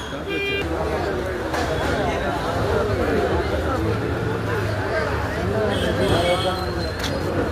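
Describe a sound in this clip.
A crowd of men talks loudly all at once nearby.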